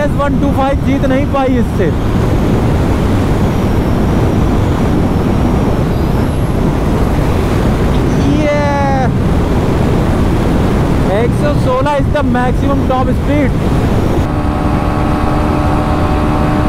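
Wind rushes loudly past while riding at high speed.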